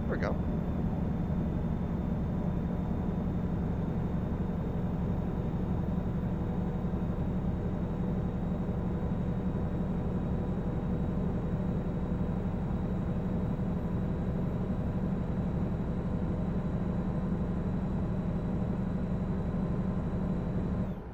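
A truck engine hums steadily at cruising speed.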